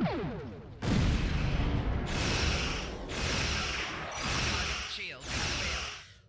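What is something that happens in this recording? Loud explosions boom and roar one after another.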